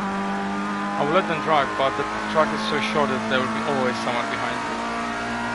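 A racing car engine revs up and down in quick bursts as it shifts down.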